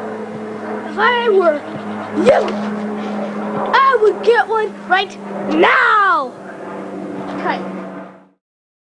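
A young boy shouts and talks excitedly close by.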